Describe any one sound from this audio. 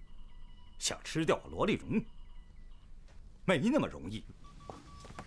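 A second man speaks calmly.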